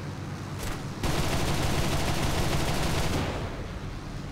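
Machine guns fire in a rapid burst.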